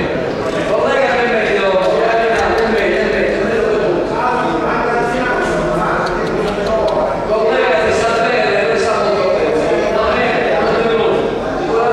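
A middle-aged man speaks loudly and with animation in a large echoing hall.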